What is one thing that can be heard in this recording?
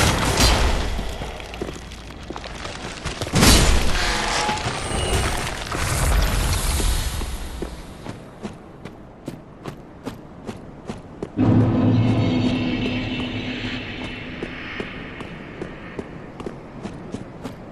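Armored footsteps clank steadily on stone.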